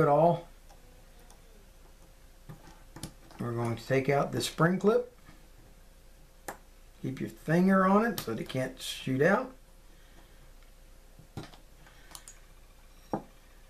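Small metal parts of a fishing reel click together.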